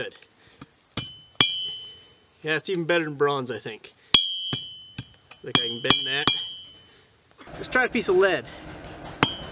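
A hammer strikes metal on an anvil with a sharp ringing clang.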